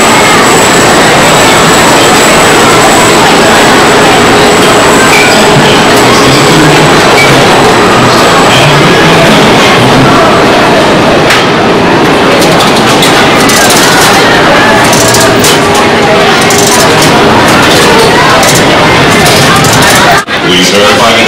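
A crowd of people chatters loudly in an echoing space.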